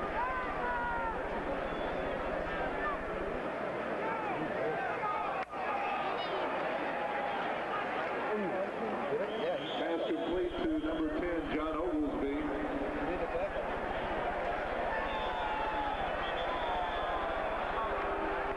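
A large crowd roars and chatters in an open stadium.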